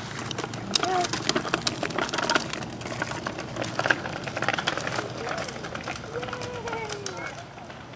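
Small bicycle tyres roll and crunch over a rough path.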